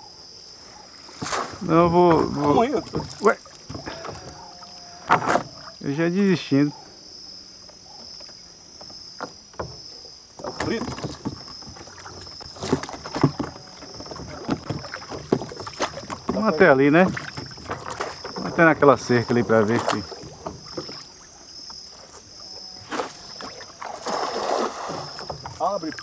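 A cast net splashes down onto water.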